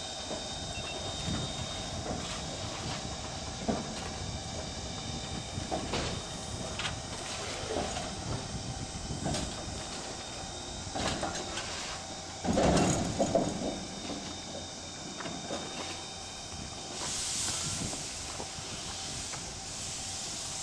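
A steam locomotive chuffs slowly as it moves along.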